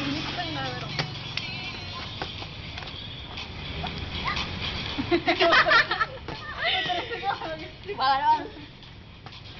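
A young girl talks and laughs nearby, outdoors.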